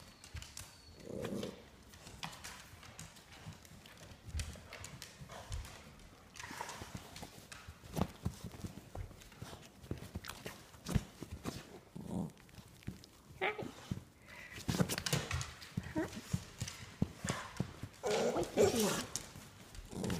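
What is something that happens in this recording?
A puppy growls and yips playfully, close by.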